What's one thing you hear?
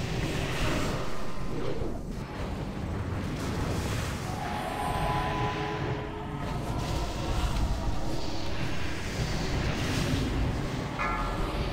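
Magic spells crackle and whoosh during a fantasy battle.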